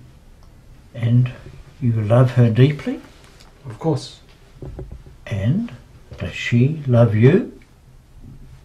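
An elderly man speaks calmly and warmly close by.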